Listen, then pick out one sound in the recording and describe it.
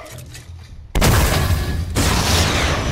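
A rocket launcher fires with a loud blast.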